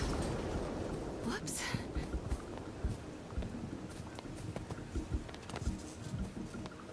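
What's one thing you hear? Tall grass rustles and swishes against a moving body.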